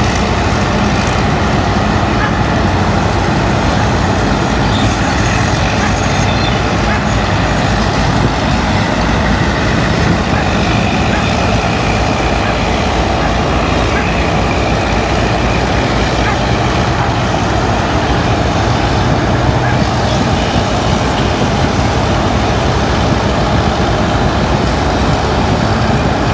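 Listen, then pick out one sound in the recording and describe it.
A steam shovel chugs and rumbles steadily nearby.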